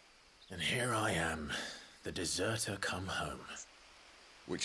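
A man speaks in a low, wry voice close by.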